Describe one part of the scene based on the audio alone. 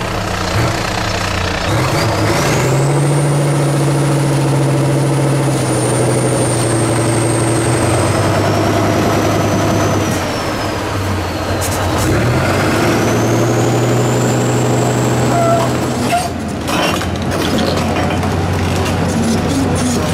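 Mud and dirt crunch under truck tyres.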